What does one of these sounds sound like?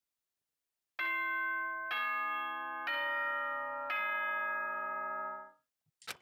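A bell chime rings four notes.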